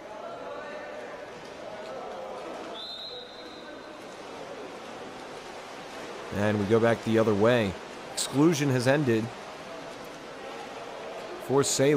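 Water splashes as swimmers thrash and kick in an echoing indoor pool.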